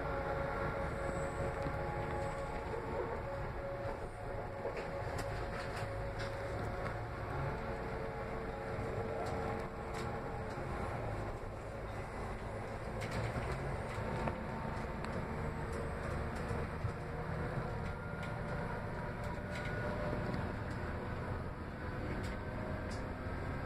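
A train carriage rattles and creaks as it moves.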